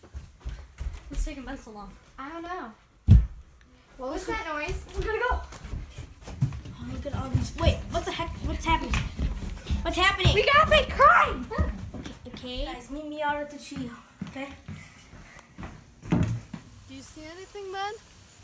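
Children talk excitedly.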